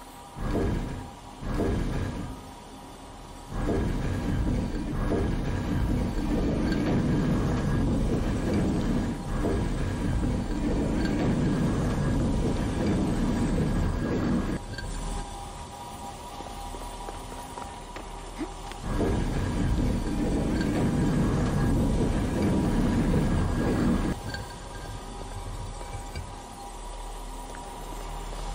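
A light beam hums steadily.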